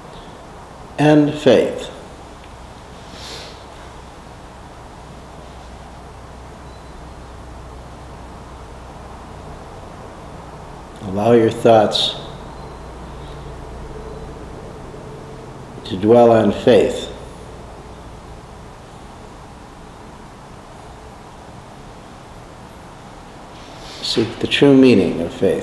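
An elderly man speaks calmly in short bursts with long pauses, close by.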